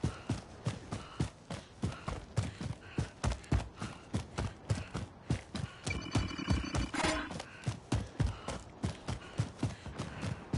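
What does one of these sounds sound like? Footsteps run quickly over dry grass and dirt.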